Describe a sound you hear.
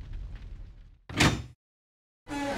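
A wooden door shuts with a thud.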